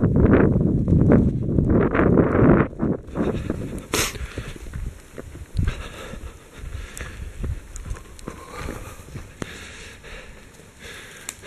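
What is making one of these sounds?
Footsteps crunch and thud on dry leaves as people run along a trail.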